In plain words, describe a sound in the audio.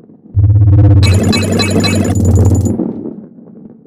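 Coins chime brightly as they are collected.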